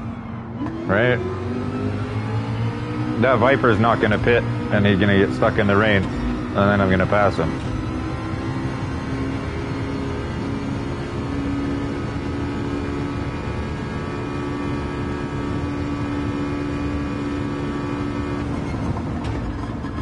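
A racing car engine roars loudly, climbing in pitch as it shifts up through the gears.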